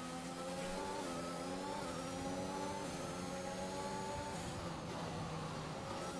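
A racing car engine whines at high revs, with its pitch climbing and dropping sharply at each gear change.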